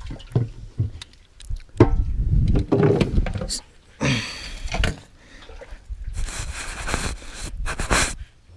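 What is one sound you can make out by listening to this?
A paddle splashes and swishes through water.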